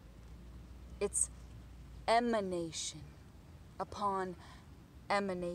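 A young woman speaks close by in a lively, cheerful voice.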